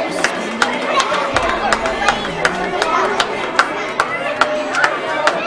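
Children cheer and shout with excitement.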